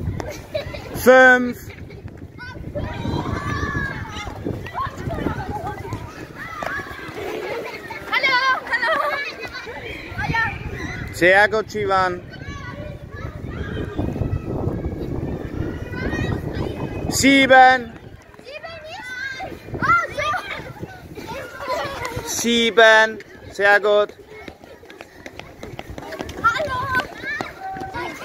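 Footsteps of children run on a hard court.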